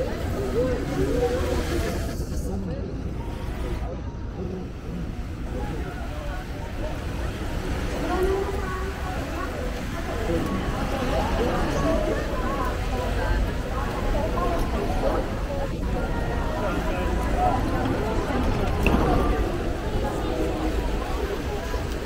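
Many people chatter in a busy crowd outdoors.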